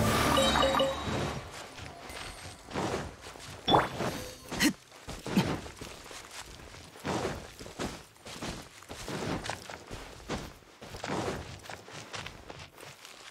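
Footsteps patter quickly on grass and stone.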